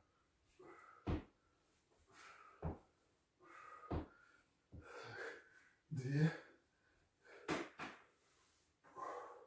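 A man breathes out hard with each effort, close by.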